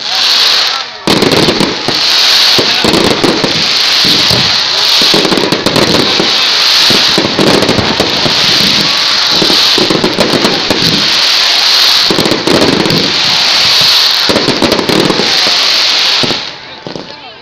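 Firework sparks fizz and hiss steadily.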